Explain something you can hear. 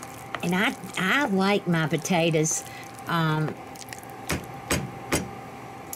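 A wooden spoon stirs and scrapes thick mashed potatoes in a bowl.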